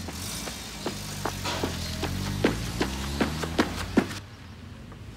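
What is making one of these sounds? Running footsteps slap on pavement.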